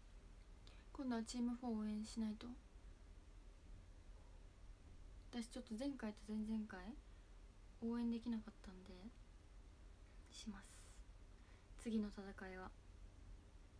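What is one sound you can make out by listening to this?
A young woman speaks calmly and close by, in short bursts.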